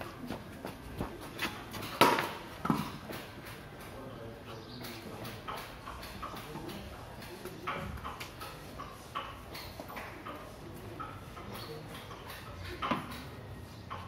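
A cricket bat knocks sharply against a ball outdoors.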